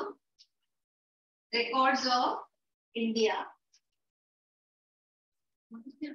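A woman speaks clearly in short phrases, as if teaching.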